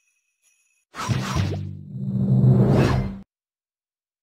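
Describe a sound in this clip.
A game transition whooshes with a low rumble.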